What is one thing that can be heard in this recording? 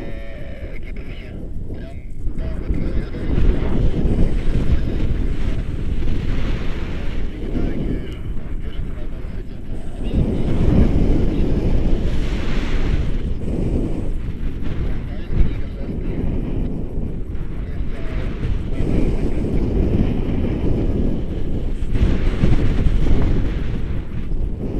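Strong wind rushes and buffets loudly past a microphone.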